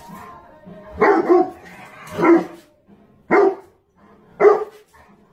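A dog barks sharply several times.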